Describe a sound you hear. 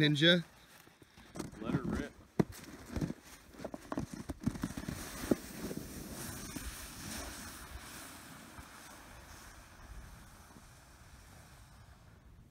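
A sled slides over snow with a steady hissing scrape.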